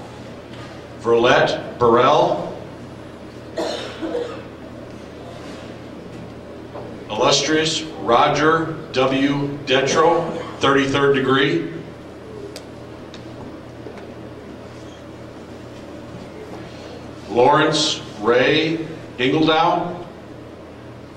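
A man speaks formally into a microphone, heard in a large echoing hall.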